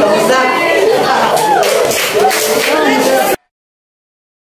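A group of young people shout and cheer together.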